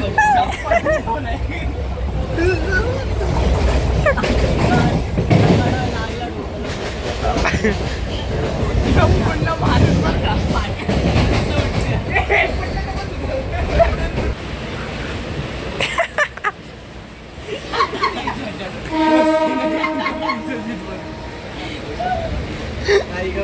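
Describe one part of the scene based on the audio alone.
Young men laugh loudly and playfully close by.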